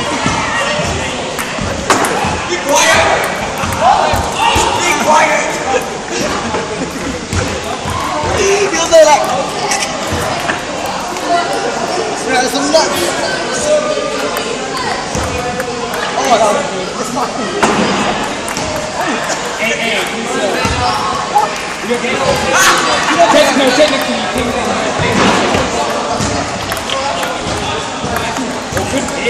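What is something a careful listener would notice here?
Teenage boys chatter and shout in a large echoing hall.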